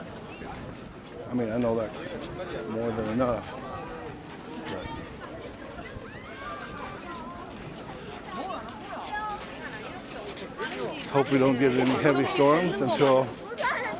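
Men and women chat as they stroll past outdoors.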